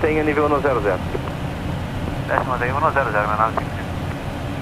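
A man speaks briefly over a radio headset.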